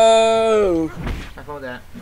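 A magic blast bursts with a bright whoosh.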